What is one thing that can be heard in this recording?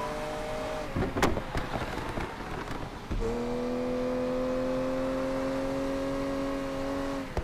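A sports car engine roars at high revs.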